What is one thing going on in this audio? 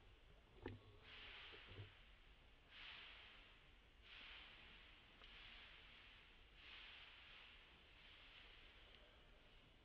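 A baby monkey whimpers in short, soft cries.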